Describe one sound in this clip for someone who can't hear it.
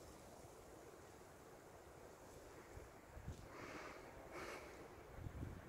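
Wind blows outdoors with a low rumble.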